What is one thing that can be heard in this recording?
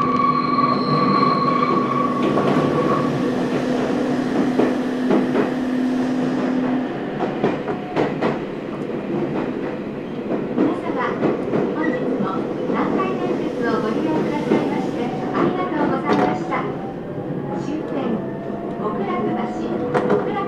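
Train wheels clack and squeal over rail joints.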